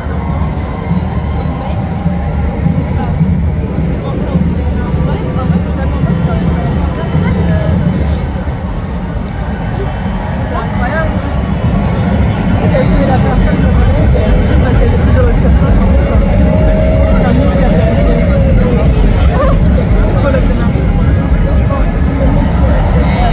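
A large outdoor crowd cheers and chatters loudly.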